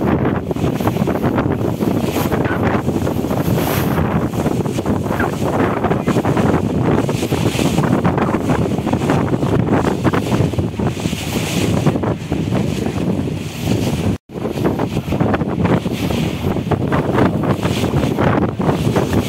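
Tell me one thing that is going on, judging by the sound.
Wind blusters loudly over open water.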